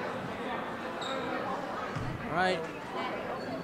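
Sneakers squeak on the hardwood court.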